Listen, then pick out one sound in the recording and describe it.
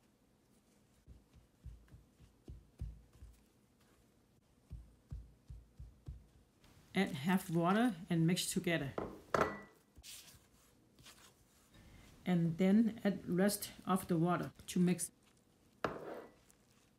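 A spatula scrapes and stirs flour in a glass bowl.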